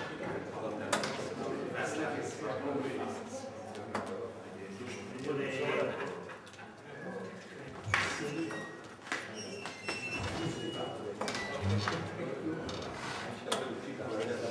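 Darts thud sharply into a board.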